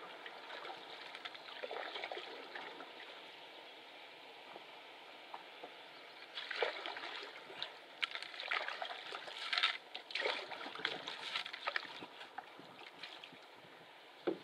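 A canoe's hull brushes and swishes through tall grass.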